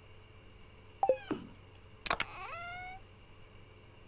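A game menu opens and closes with a swishing chime.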